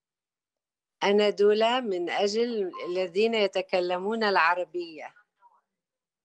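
An older woman speaks calmly over an online call.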